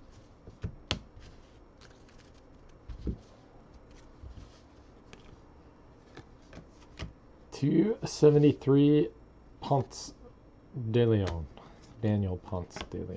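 Cards rustle and flick softly as they are sorted by hand.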